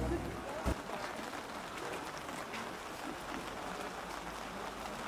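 Rain patters on umbrellas.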